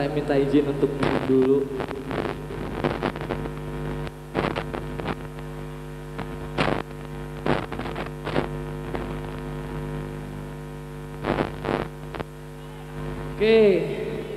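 A keyboard holds a steady, droning chord in a large hall.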